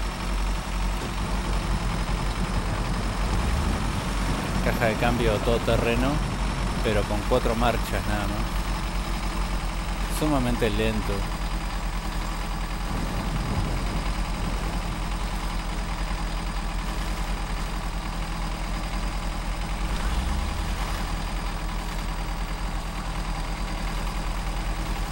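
Truck tyres squelch through deep mud.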